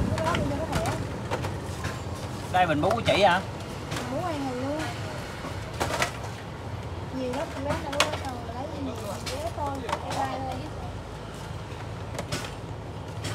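Cardboard boxes rustle and clatter as they are handled.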